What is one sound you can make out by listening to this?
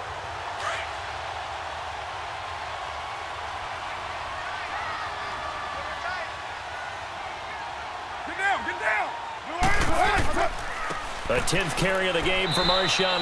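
A stadium crowd murmurs and cheers steadily in the background.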